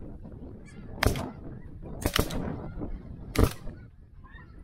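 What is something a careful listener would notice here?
Shotguns fire several loud shots in quick succession.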